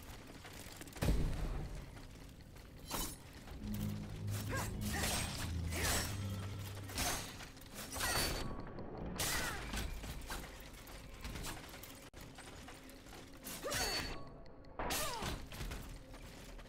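Blades clash and strike in a fight.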